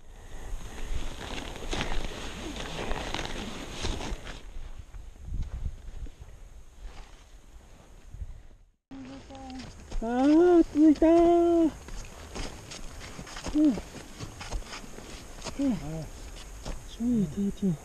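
Boots crunch on hard snow with each step.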